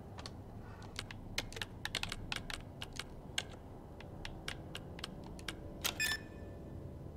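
Keypad buttons click and beep as a code is entered.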